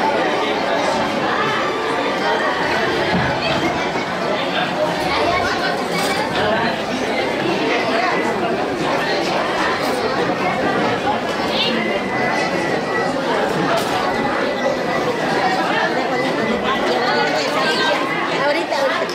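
A crowd of men, women and children chatters all around.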